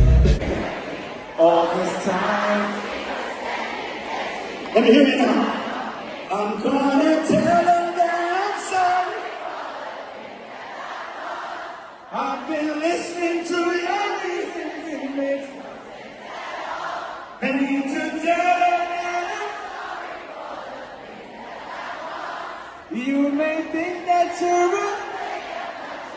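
A singer's voice booms through loudspeakers in a large echoing arena.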